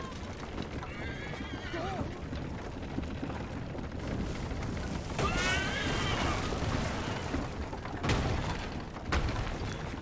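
Horse hooves clatter on a street.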